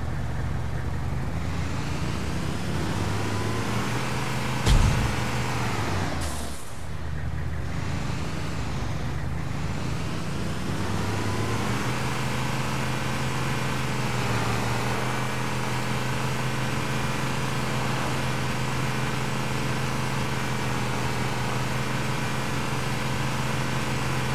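A vehicle engine hums steadily and revs as it drives.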